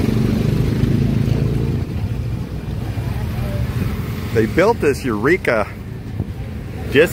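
Street traffic hums in the distance.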